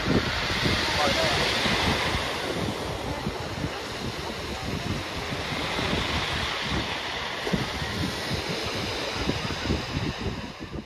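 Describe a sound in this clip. Wind blows outdoors with a low rumbling.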